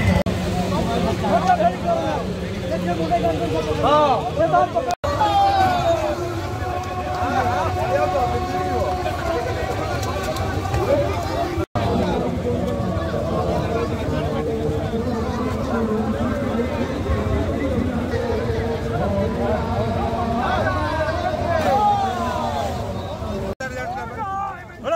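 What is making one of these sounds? A crowd of men shout and call out excitedly outdoors.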